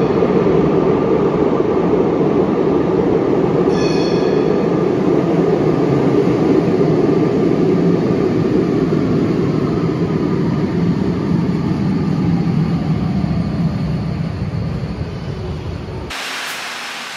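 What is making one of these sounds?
A tram rumbles into an echoing underground station and slows to a stop.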